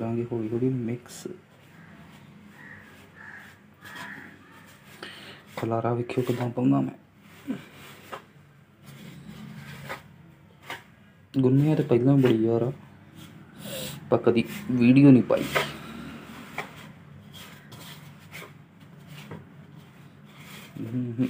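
A hand rubs and mixes flour in a metal bowl, with soft scraping.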